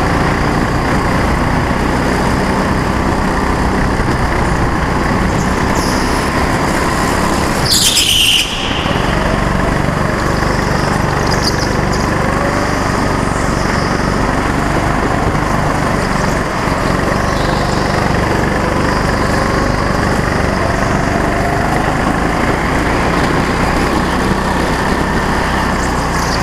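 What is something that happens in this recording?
A small kart engine roars and buzzes steadily up close.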